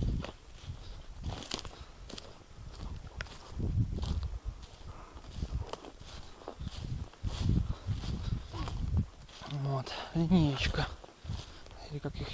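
Footsteps crunch over dry twigs and moss.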